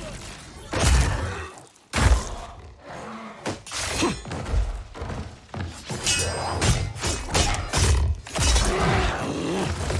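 Heavy blows land with loud thuds and fleshy slashes.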